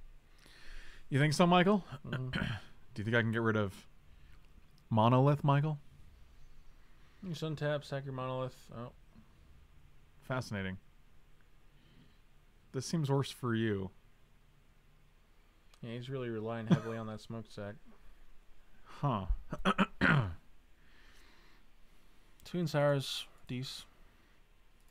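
A man talks calmly and casually into a close microphone, in short bursts with pauses.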